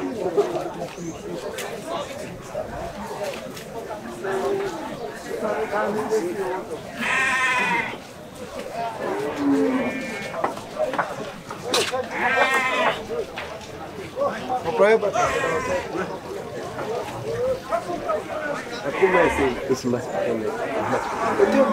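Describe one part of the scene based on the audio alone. Cattle bellow in a pen.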